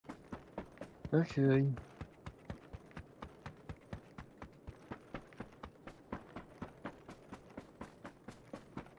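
Quick footsteps crunch on dirt and grass.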